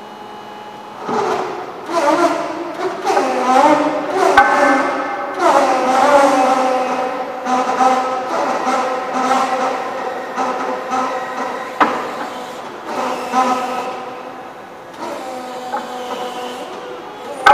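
An electric forklift's lift motor whines, rising and falling in pitch, in a large echoing hall.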